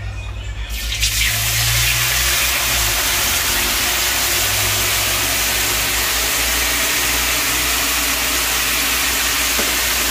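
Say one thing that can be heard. Liquid poured into a hot pan sizzles loudly and steadily.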